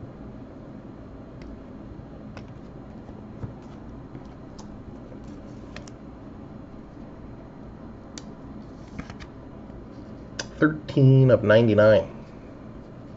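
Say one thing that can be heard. Plastic card sleeves and packs crinkle and click as hands handle them.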